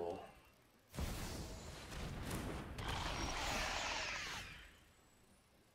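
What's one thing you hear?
A magical whooshing effect sweeps through as a card takes effect.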